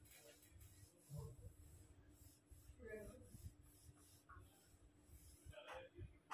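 A felt eraser rubs back and forth across a whiteboard with a soft swishing.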